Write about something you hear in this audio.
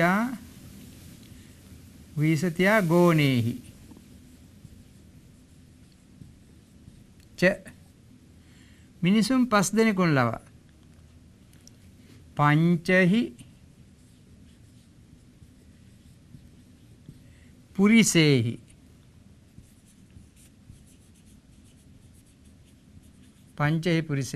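An elderly man speaks calmly in short bursts, close by.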